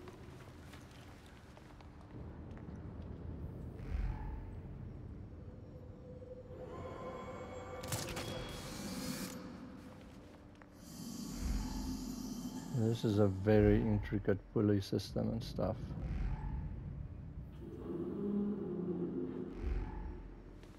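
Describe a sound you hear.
Heavy footsteps thud on a hard floor.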